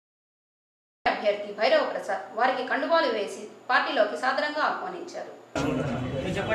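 A young woman speaks calmly and clearly into a close microphone.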